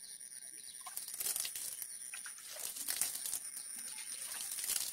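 A plastic bag crinkles as it is handled.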